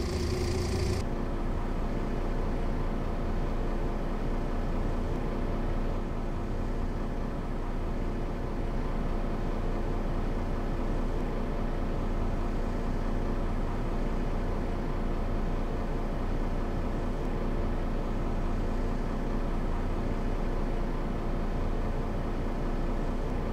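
A bus engine hums low and steady from inside the cab.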